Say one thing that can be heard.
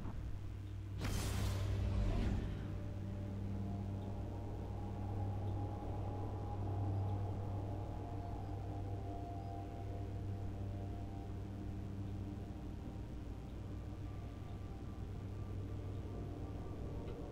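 A deep steady hum drones through a swirling rush.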